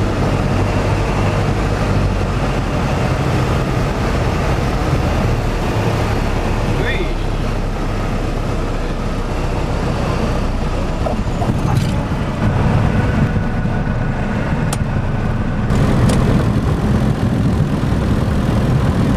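A small plane's propeller engine drones loudly and steadily.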